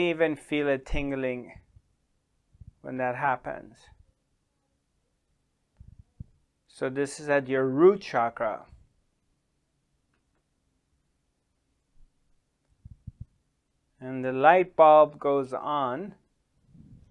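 A middle-aged man speaks slowly and calmly into a close microphone, with long pauses.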